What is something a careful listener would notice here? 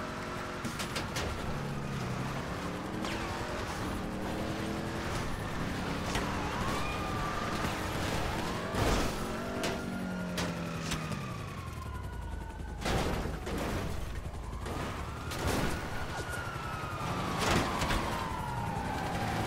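A siren wails nearby, rising and falling.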